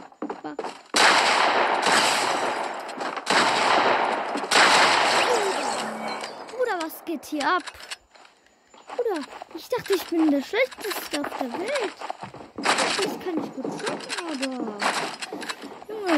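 Loud gunshots blast and ring out.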